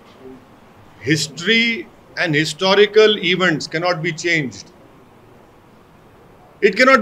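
A middle-aged man speaks firmly into a microphone, pausing between phrases.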